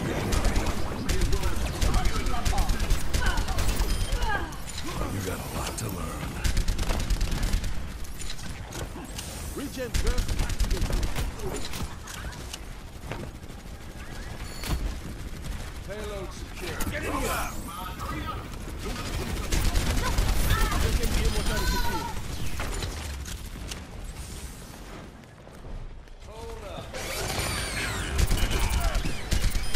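Guns in a video game fire in rapid bursts.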